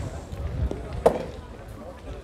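Two metal balls clack together once.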